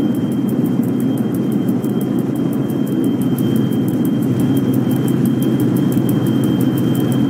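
An electric locomotive rumbles along the rails.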